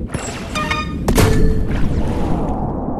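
A loud explosion bursts as a ball hits the goal.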